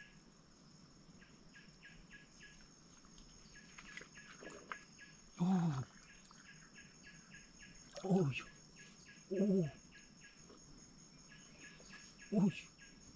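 Water sloshes and splashes as hands dig in a shallow pool.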